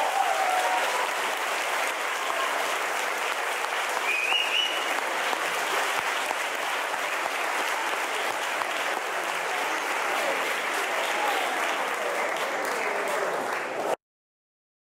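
A large mixed choir of women and men sings together.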